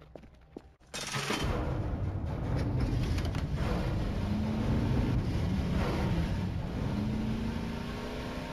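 A vehicle engine roars and revs steadily.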